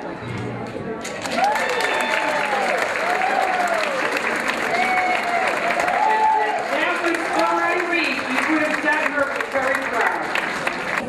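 A group of elderly women sings together.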